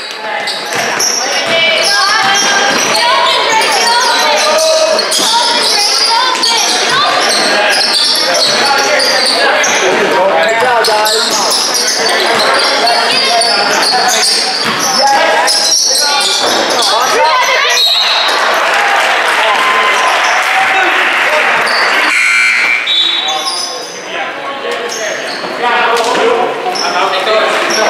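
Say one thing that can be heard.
Sneakers squeak sharply on a floor in a large echoing hall.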